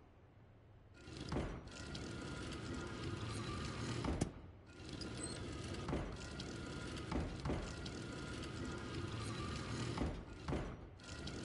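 A heavy stone window grinds and rumbles as it turns.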